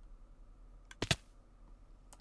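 A heavy thud lands from a fall.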